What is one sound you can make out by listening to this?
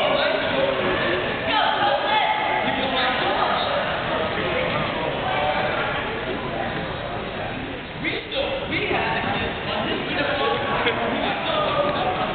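Men talk nearby in conversation.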